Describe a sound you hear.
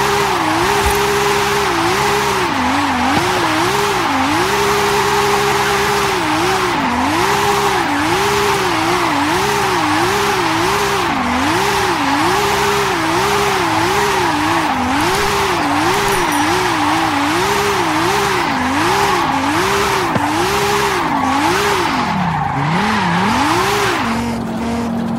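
Tyres screech loudly as a car drifts.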